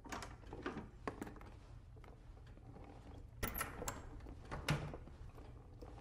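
A door clicks and swings open.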